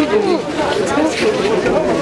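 A young man speaks close to the microphone.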